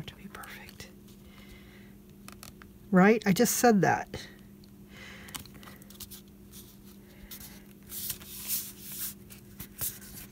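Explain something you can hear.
Paper crinkles and rustles under hands.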